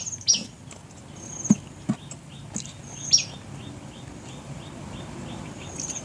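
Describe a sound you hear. A man chews food noisily, smacking his lips.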